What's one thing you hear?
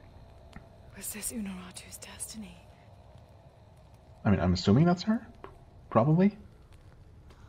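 A young woman speaks softly and calmly, close by.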